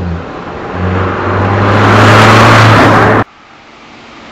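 A car roars past close by at speed.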